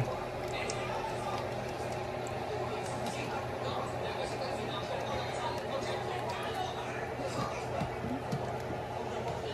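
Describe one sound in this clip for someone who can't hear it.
A ladle stirs and scrapes inside a metal pot.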